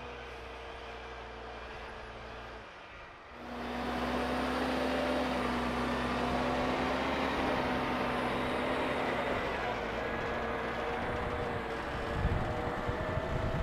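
A diesel tractor labours, pulling a loaded trailer.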